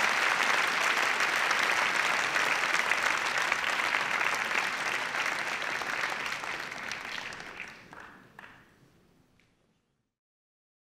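A large audience applauds loudly in an echoing hall and slowly fades away.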